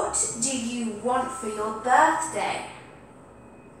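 A young woman speaks clearly and calmly close by.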